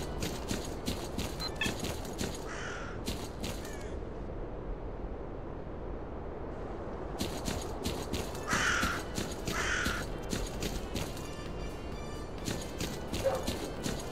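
Footsteps crunch steadily through dry grass.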